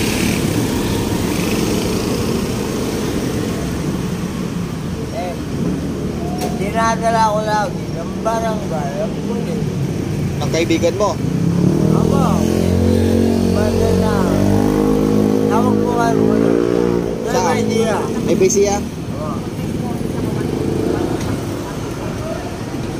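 Street traffic rumbles steadily in the background.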